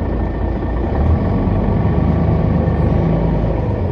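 A bus engine revs up as the bus pulls away.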